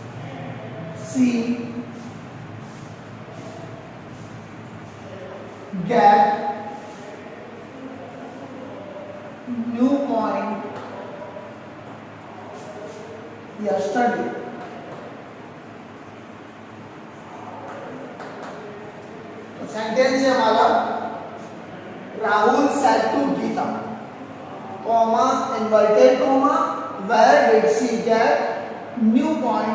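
A man speaks calmly and clearly, as if teaching, in a room with some echo.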